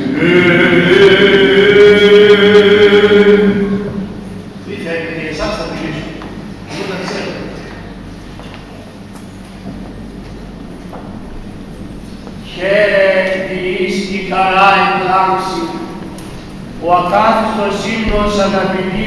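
An elderly man chants in a long sustained melody through a microphone, echoing in a large hall.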